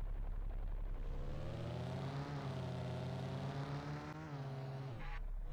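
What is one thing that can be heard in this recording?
A car engine revs up and roars as the car speeds up.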